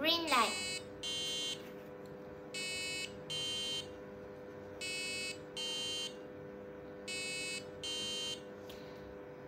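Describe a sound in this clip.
An electronic buzzer beeps in short, evenly spaced pairs.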